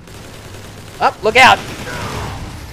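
An energy rifle fires with sharp, whining electronic blasts.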